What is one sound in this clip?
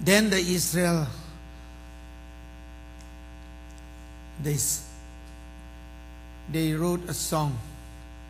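A man speaks with animation in short bursts through a loudspeaker in a large echoing hall.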